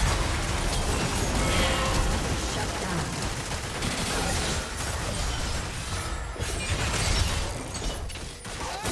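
Video game spells whoosh and blast in a busy battle.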